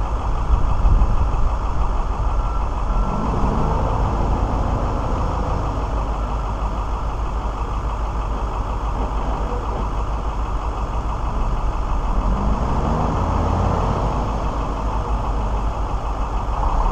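Wind buffets outdoors with a low rumble.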